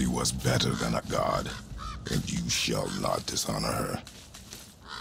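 A deep-voiced man speaks gravely, close by.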